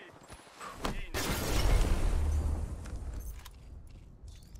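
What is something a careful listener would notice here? A grenade explodes with a deep boom.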